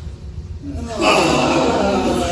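An audience laughs in an echoing room.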